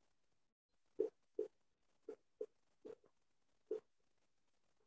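A marker squeaks in short strokes on a whiteboard.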